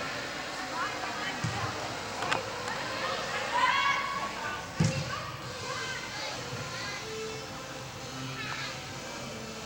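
Young women shout to each other in a large echoing hall.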